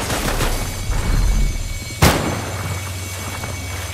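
Water splashes and bursts loudly.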